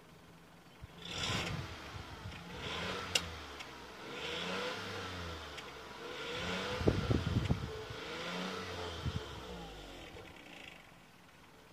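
A car engine revs up and down close by.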